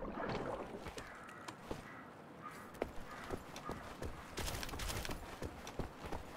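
Footsteps thud quickly on hard ground and a metal grating.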